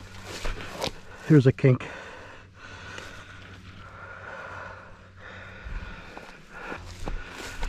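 Plastic tubing scrapes and rustles through dry grass.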